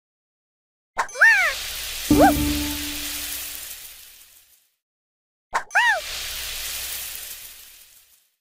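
Cheerful game sound effects chime and whoosh as pieces clear.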